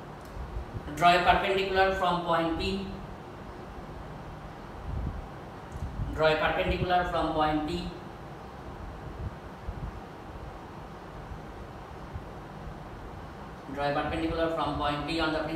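A man speaks close by, explaining.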